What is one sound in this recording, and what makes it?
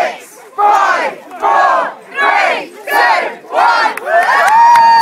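A crowd of young men and women shouts a countdown together in loud bursts.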